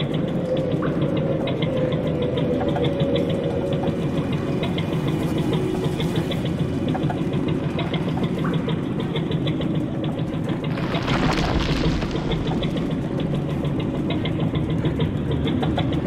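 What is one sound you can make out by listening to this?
Footsteps thud slowly on wooden boards.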